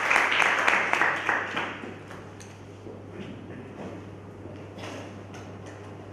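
Footsteps knock on a wooden floor in an echoing hall.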